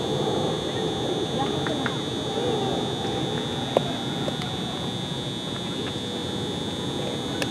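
Men talk and call out across an open outdoor field at a distance.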